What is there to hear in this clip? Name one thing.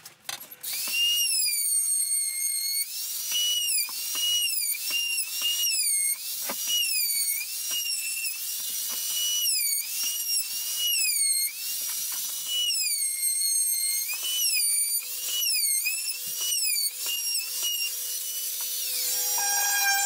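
A router whines loudly, its pitch rising and dropping again and again as it cuts.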